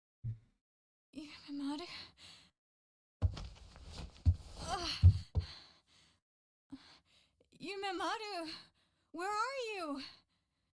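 A young woman shouts out a name loudly, calling anxiously.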